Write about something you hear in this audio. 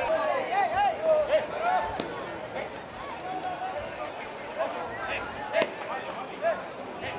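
A crowd of men and women shouts and cheers outdoors.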